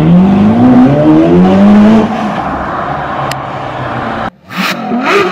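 A sports car engine roars as the car accelerates away.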